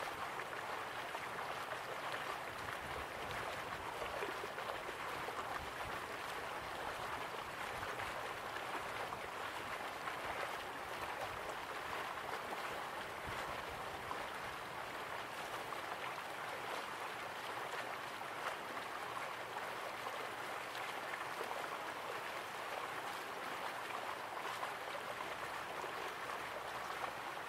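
A small waterfall splashes steadily into a pool.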